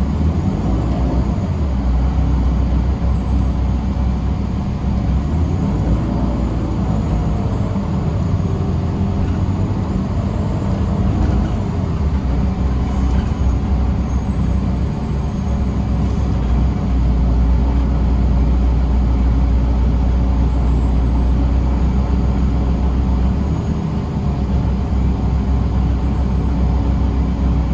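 Tyres roll over the road with a low hum.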